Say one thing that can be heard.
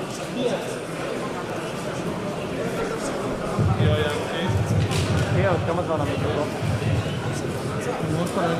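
A crowd of men murmurs and chatters in a large echoing hall.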